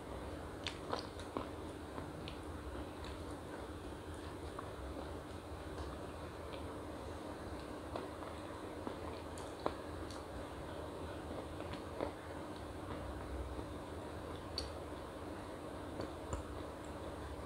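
A young woman chews and crunches a crisp wafer close by.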